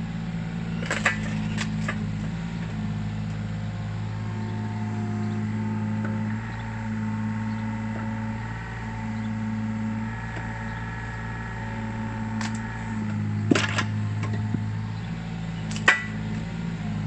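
Wood splits with sharp cracks.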